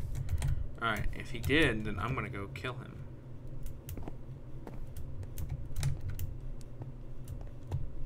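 Footsteps tap on stone in a game.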